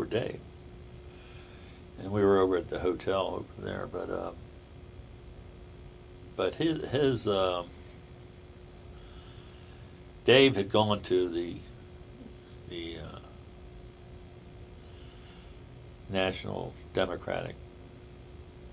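A middle-aged man speaks calmly and thoughtfully close by, with long pauses.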